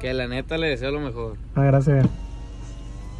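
A young man speaks up close with animation.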